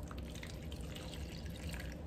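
Liquid pours into a glass cup.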